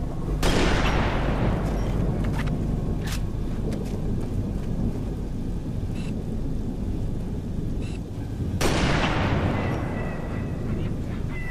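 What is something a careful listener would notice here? A sniper rifle fires with a loud crack that echoes and rumbles away.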